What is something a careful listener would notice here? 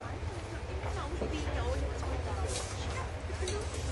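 A serving spoon clinks against a metal food tray.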